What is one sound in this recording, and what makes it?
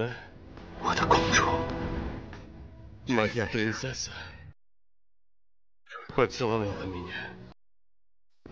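A young man speaks softly and emotionally up close.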